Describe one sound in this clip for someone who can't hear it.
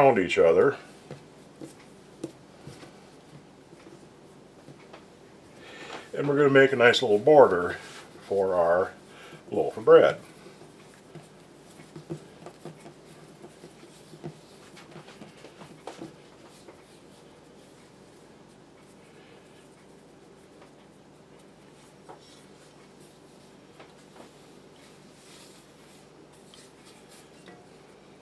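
Hands softly press and roll dough on a countertop.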